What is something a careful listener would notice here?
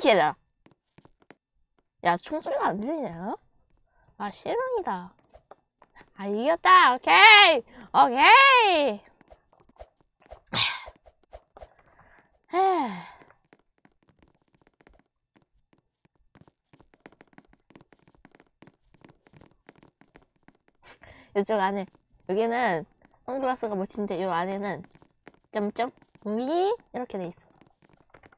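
A boy talks excitedly into a close headset microphone, in bursts with pauses.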